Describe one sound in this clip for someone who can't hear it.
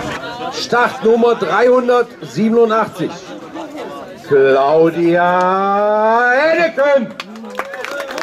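A man speaks with animation through a loudspeaker outdoors.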